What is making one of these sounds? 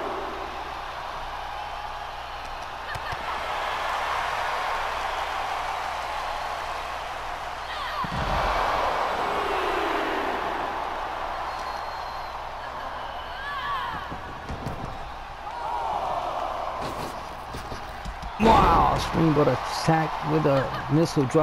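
A large crowd cheers and murmurs in a big arena.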